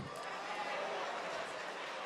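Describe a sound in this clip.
Paper rustles as pages are turned.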